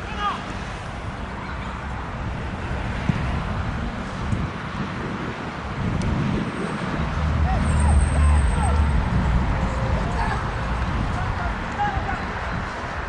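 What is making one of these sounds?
Men shout to each other at a distance outdoors.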